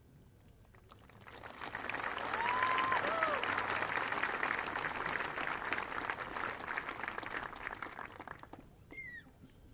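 A crowd applauds and cheers loudly outdoors.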